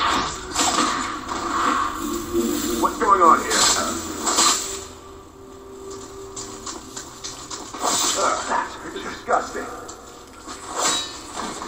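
A blade slashes and strikes in quick bursts of fighting.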